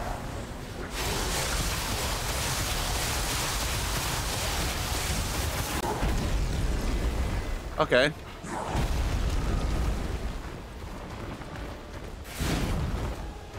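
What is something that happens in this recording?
Electricity crackles and sizzles loudly.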